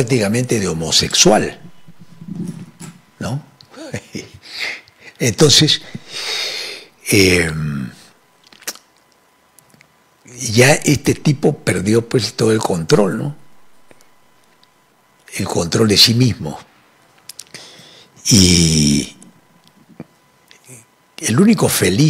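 An elderly man speaks with animation into a close microphone, pausing often.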